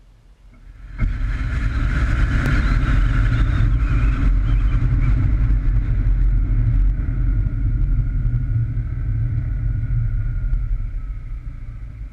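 A car drives along a road with a steady low rumble and wind rushing past.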